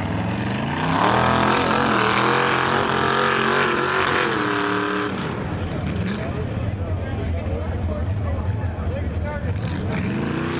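A loud truck engine roars and revs hard.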